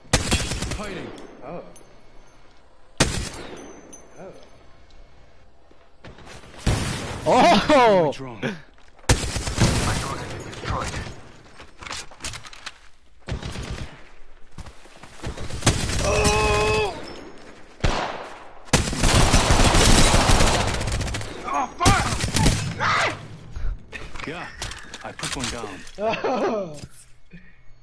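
Rapid gunfire cracks in short, loud bursts.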